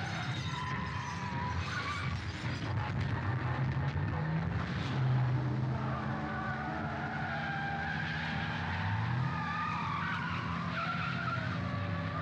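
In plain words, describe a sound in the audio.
Car engines roar as vehicles speed along a road.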